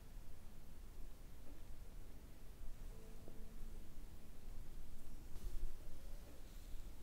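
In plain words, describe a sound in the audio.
Hands softly rub against skin and hair close by.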